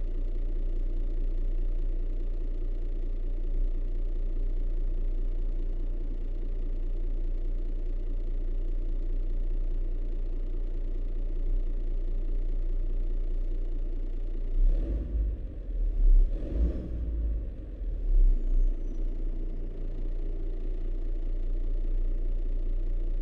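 A truck engine hums steadily at low speed.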